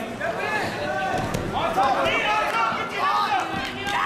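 Two wrestlers thud onto the mat.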